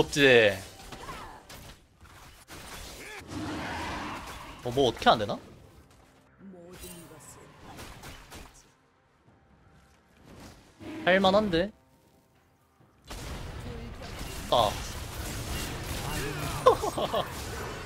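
Video game combat sound effects clash and whoosh.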